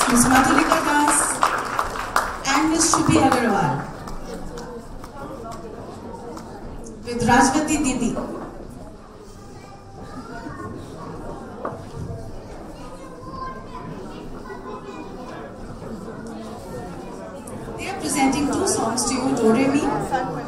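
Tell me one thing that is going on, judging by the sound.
A woman speaks loudly through a loudspeaker.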